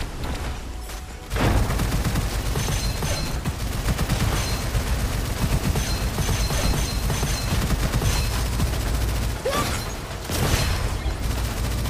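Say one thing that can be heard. Game explosions and magic effects crackle and whoosh.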